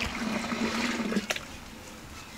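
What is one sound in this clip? Water pours from a jug into a metal pot.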